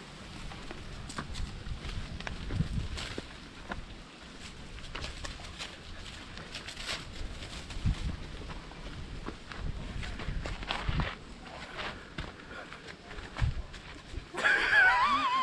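Footsteps tread along a dirt path.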